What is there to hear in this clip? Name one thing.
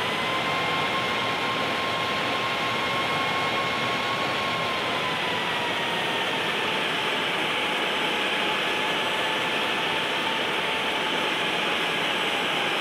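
A jet engine roars steadily with a high whine that slowly drops in pitch.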